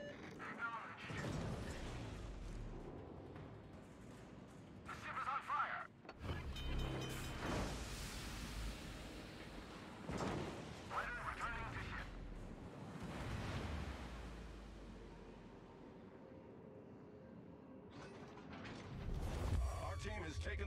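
Big naval guns fire in booming salvos that rumble away.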